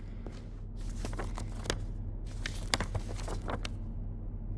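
A sheet of paper rustles and crinkles.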